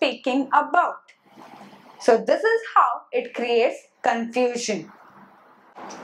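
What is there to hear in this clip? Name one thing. A young woman speaks calmly and clearly, as if teaching.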